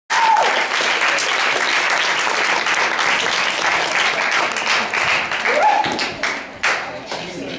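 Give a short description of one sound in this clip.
A crowd applauds and cheers loudly.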